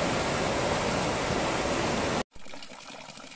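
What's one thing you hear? Water gushes loudly from a spout and splashes onto rocks.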